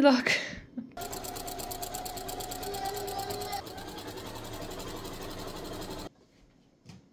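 A sewing machine runs in quick, steady stitches and then stops.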